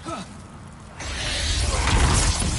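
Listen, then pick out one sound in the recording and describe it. A heavy rushing roar swells up and grows loud.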